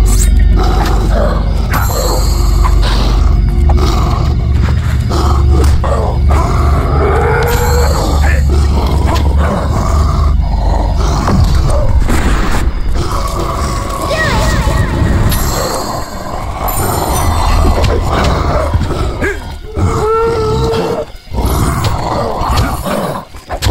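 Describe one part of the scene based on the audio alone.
A fireball spell bursts with a fiery whoosh.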